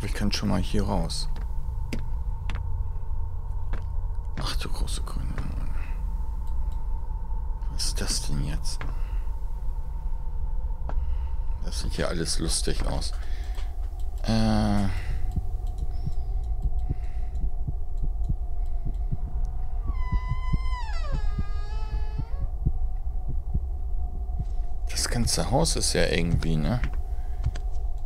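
A woman speaks quietly and calmly into a close microphone.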